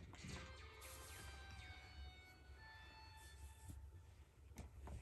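Short electronic chimes ring out from a television speaker.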